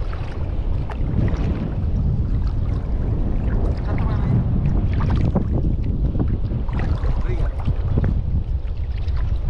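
Shallow water splashes and laps close by.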